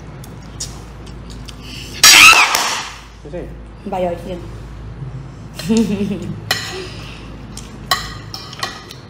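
Metal cutlery clinks against a plate.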